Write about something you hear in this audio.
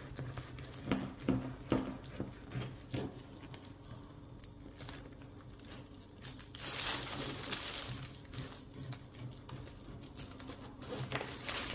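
A knife crunches through a crusty bread roll.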